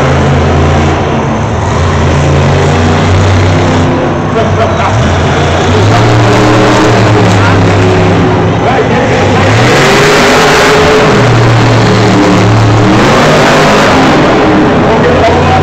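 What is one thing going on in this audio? A monster truck engine roars loudly and revs up and down.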